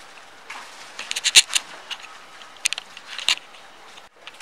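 Cups and saucers clink and clatter.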